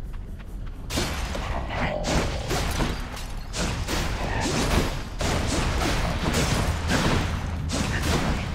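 Blades slash and blows land in quick succession.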